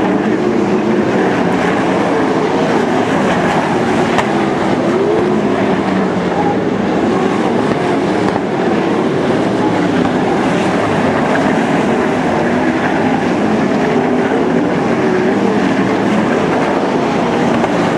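Racing car engines roar loudly, rising and falling in pitch as they pass.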